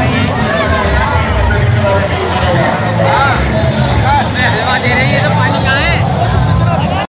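A crowd of men shouts and chants loudly outdoors, close by.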